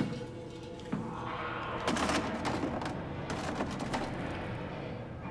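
A hollow plastic sign clatters onto a hard floor.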